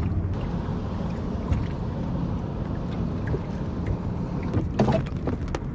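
Choppy water slaps and laps against a dinghy's wooden hull.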